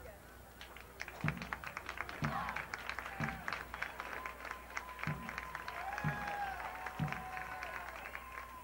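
A marching band's brass horns play sustained notes.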